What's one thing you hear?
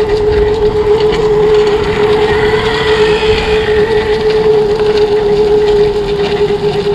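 Tyres rumble over a bumpy dirt track.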